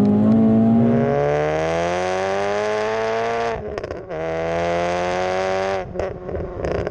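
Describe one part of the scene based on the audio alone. A car exhaust roars loudly up close.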